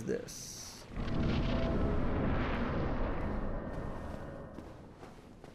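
A soft rushing whoosh sounds as an armoured figure passes through a wall of white mist.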